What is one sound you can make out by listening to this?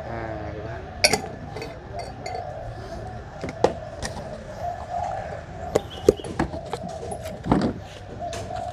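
A glass jar knocks and clinks on a hard plastic surface.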